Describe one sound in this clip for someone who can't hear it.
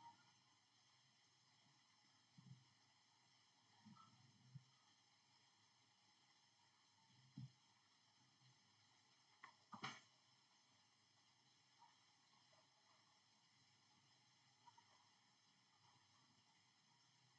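A young girl speaks faintly over an online call.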